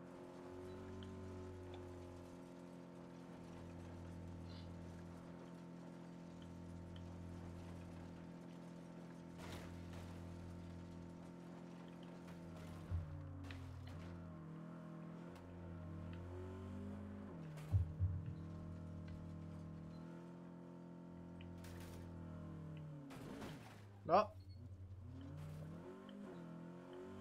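A car engine hums steadily and shifts in pitch as the car drives over rough ground.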